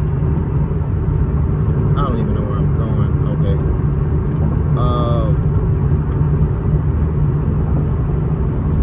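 A car rumbles low and steady from inside the cabin.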